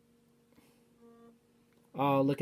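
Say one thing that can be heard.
A fingerprint scanner gives a short electronic beep.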